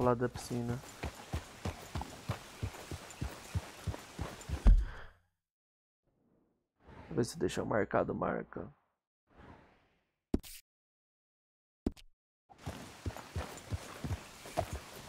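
Horse hooves thud steadily on the ground.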